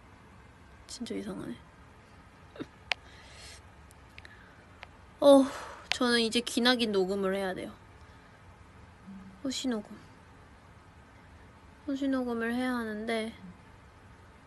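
A young woman talks casually and close to a phone microphone, in short bursts.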